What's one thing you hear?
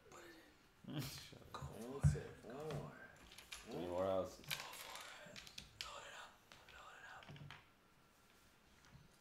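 Game pieces clack on a wooden board.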